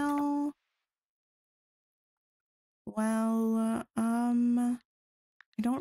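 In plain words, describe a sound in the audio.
Short electronic chimes ring out from a game menu.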